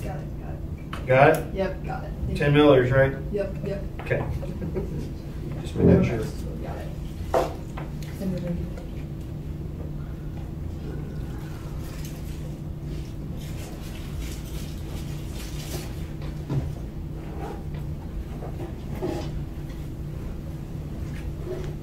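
A middle-aged man speaks in a large room.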